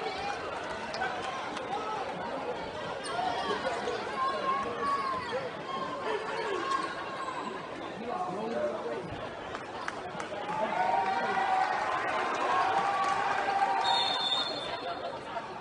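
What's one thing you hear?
A crowd chatters and cheers loudly in a large echoing hall.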